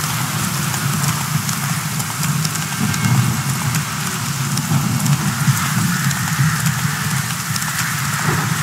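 Horse hooves thud rapidly on a dirt path at a gallop.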